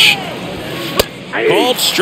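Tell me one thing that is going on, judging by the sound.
A pitched baseball smacks into a catcher's mitt.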